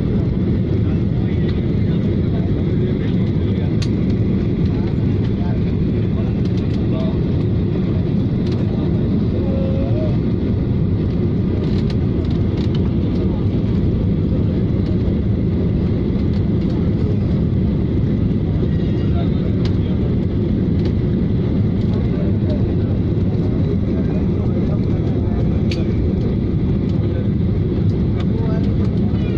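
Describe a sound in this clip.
A jet engine roars steadily inside an airplane cabin in flight.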